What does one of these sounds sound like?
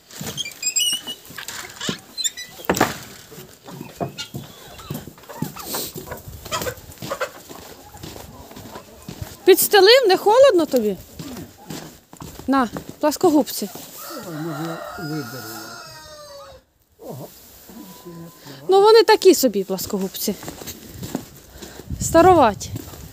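Hens cluck and squawk nearby.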